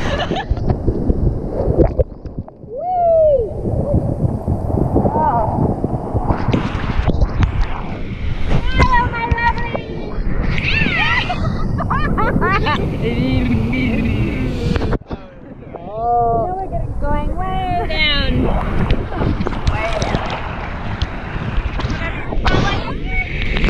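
Water splashes and bubbles as people move through the surf.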